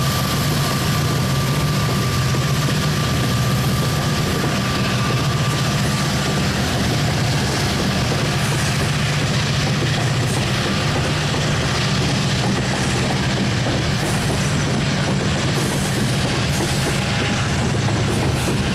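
A long freight train rumbles past close by, its wheels clattering on the rails.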